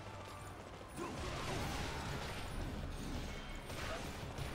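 Weapons clash and crash in a noisy fight.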